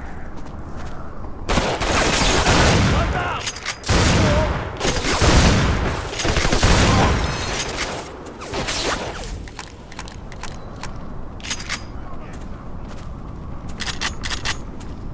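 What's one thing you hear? A shotgun is pumped with a sharp metallic clack.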